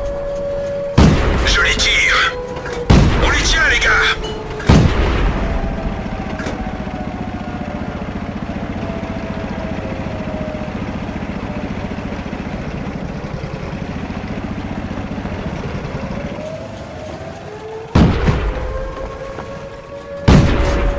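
Tank guns fire with loud booms.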